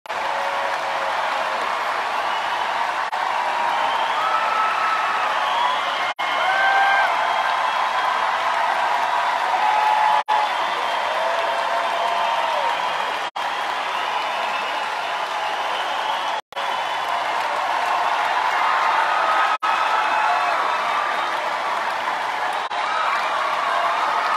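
A large crowd cheers and screams loudly in a big echoing arena.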